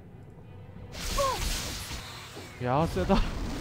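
A magic spell bursts with a loud rushing whoosh.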